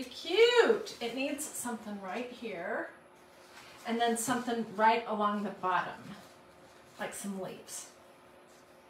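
A middle-aged woman talks calmly and warmly, close to a microphone.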